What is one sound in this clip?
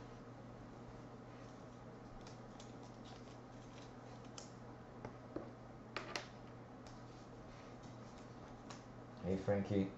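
Trading cards rustle and slide against each other as hands handle them.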